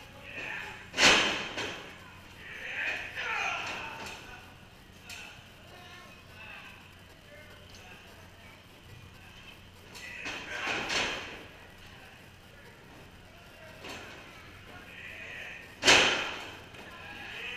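Wrestlers slam onto a ring mat with loud booming thuds that echo through a large hall.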